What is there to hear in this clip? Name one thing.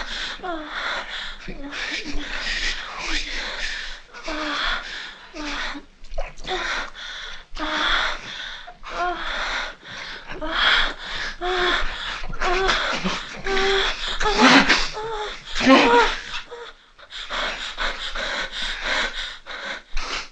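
A woman moans and breathes heavily close by.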